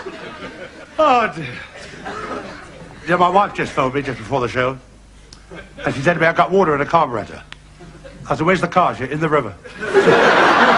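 An elderly man talks to an audience in a playful, halting way.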